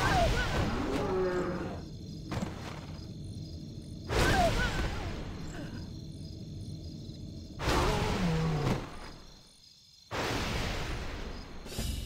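Many swords clash and spells burst in a loud battle.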